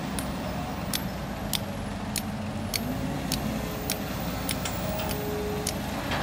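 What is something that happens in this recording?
Hydraulics whine as an excavator arm swings and lifts.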